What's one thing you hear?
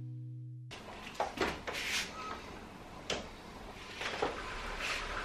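A sliding glass door rolls open.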